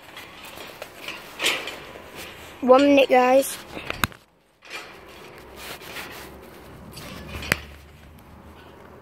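A coat rustles close by as the phone rubs against it.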